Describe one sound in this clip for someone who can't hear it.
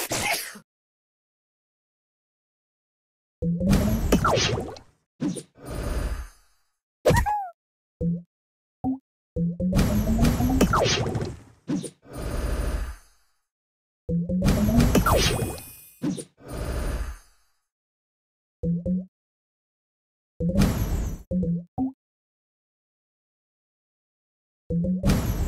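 Cartoonish game sound effects chime and whoosh in short bursts.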